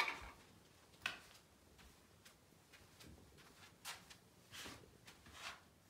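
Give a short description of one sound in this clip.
A cat paws and scuffles at a rustling rug on a hard floor.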